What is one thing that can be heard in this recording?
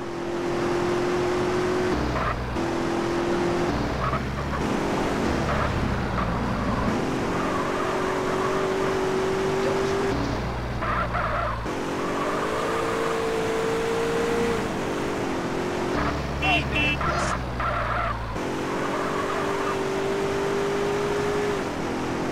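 A car engine revs hard and steadily.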